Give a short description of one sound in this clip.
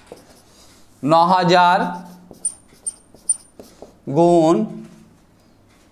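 An elderly man speaks slowly and clearly, as if teaching, close by.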